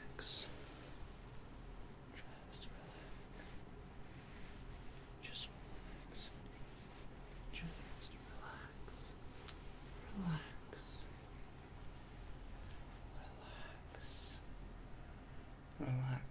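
Hands softly rub and brush against each other.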